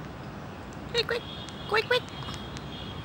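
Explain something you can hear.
A parrot squawks loudly nearby, a few sharp calls in quick succession.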